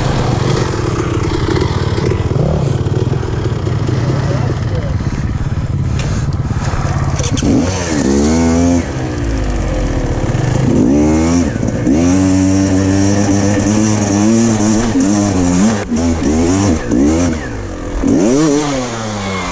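Another dirt bike engine whines nearby.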